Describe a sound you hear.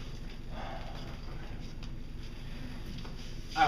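Footsteps walk across a hard floor.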